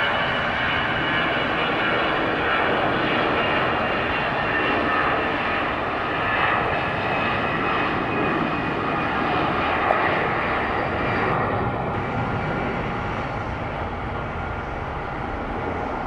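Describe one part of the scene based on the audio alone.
A jet airliner's engines roar loudly as the jet speeds down the runway and climbs away.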